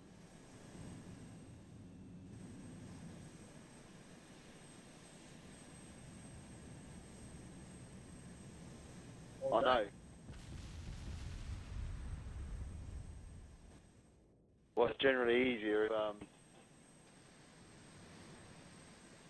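A jet engine drones steadily overhead.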